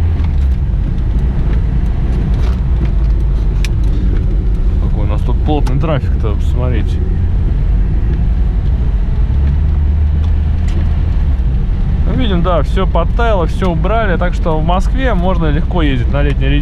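A car engine hums and rumbles steadily from inside the cabin.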